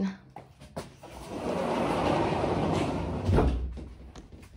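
A sliding glass door rumbles open along its track.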